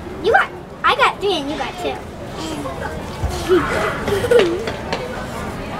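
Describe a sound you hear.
A young girl talks softly close by.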